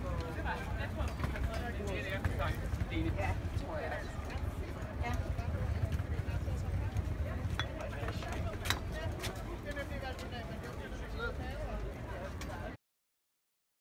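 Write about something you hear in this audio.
A crowd of adults chats nearby.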